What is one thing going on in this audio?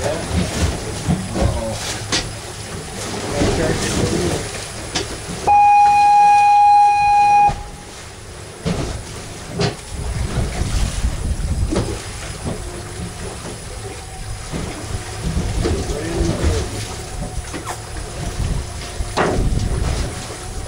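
Wind buffets loudly outdoors on open water.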